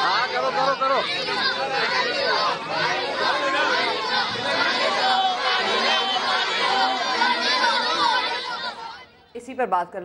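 A large crowd of men shouts and chants loudly outdoors.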